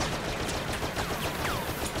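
A blaster fires a burst of laser shots.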